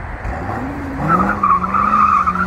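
Car tyres squeal on pavement.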